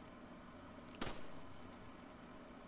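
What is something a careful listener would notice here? A handgun fires a single shot.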